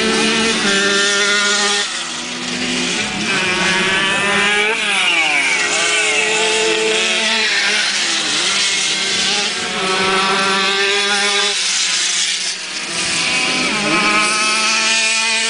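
A motorcycle engine revs and buzzes nearby.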